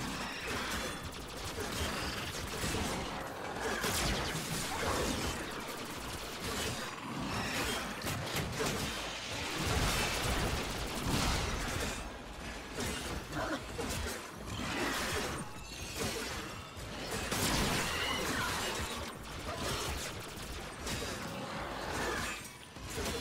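Metallic hits clang on impact.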